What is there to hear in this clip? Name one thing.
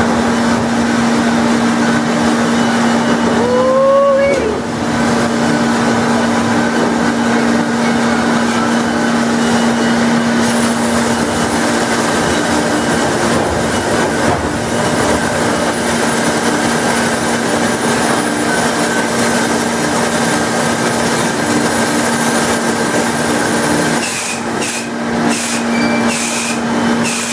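Sawmill machinery hums and rumbles steadily.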